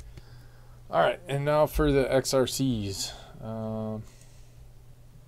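A man speaks briefly and calmly close to a microphone.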